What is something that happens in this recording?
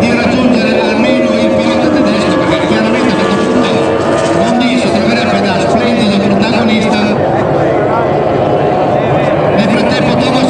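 Racing powerboat engines whine loudly at high revs.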